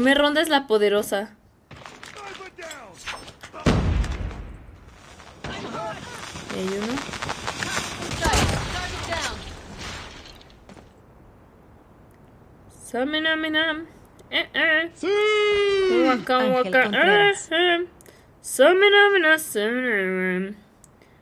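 A young woman speaks in a lively voice close to a microphone.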